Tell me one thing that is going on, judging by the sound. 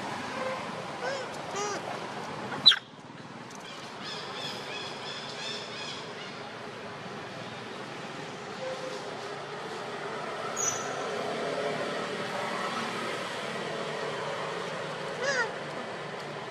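Monkeys squeak and chatter nearby.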